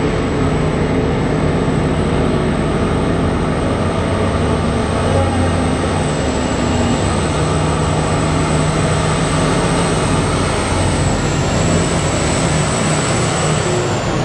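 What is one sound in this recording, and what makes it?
A huge diesel truck engine rumbles loudly as the truck drives closer.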